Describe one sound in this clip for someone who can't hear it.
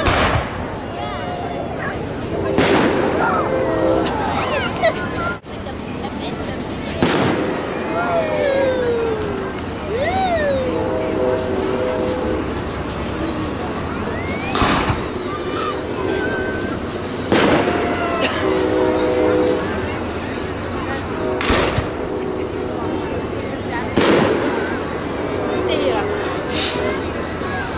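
Fireworks explode with loud booms, one after another.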